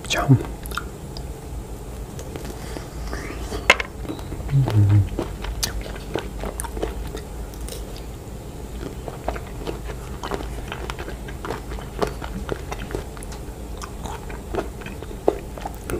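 A young man chews wetly and crunchily, close to a microphone.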